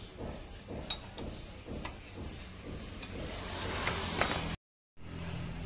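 Metal tools click and clank against an engine.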